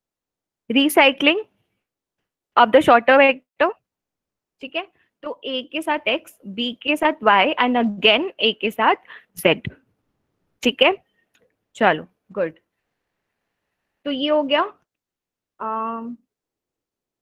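A young woman explains with animation, close to the microphone of an online call.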